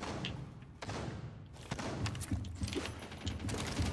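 Footsteps thud up stairs.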